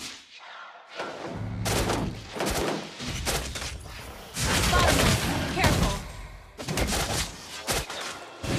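Video game spell effects whoosh and clash in a fight.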